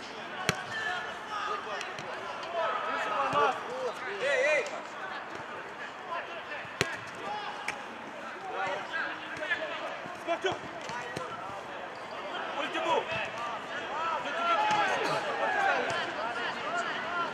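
Young men shout and call out to each other across an open outdoor pitch.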